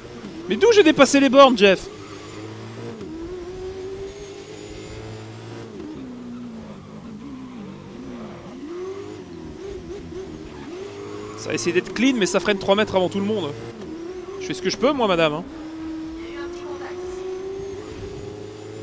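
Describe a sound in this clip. A race car engine roars and whines as it shifts gears.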